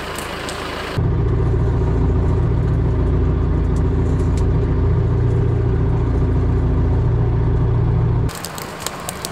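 A compact tractor engine drones loudly from inside the cab.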